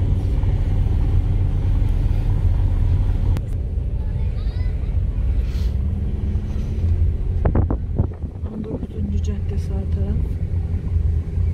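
Tyres roll over a smooth road.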